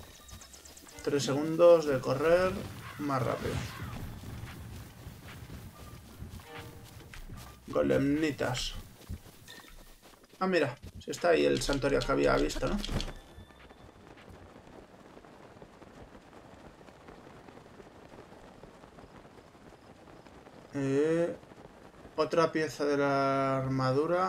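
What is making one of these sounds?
A young man talks with animation into a close microphone, in bursts.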